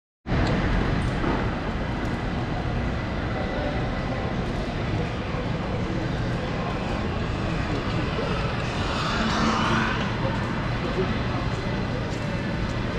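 A busy city street hums steadily outdoors.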